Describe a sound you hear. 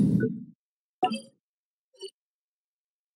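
Soft menu clicks chime.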